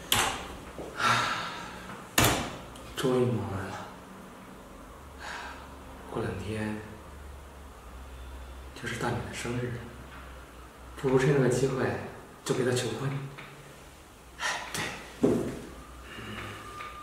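A young man talks calmly and cheerfully close by.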